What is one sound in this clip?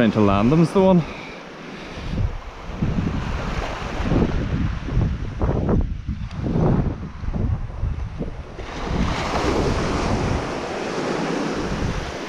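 Small waves wash and fizz onto a sandy shore.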